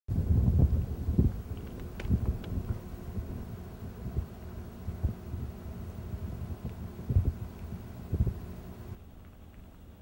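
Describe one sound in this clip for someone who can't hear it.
Wind blows and buffets outdoors.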